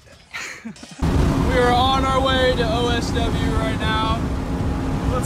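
A car engine drones loudly from inside a car at speed.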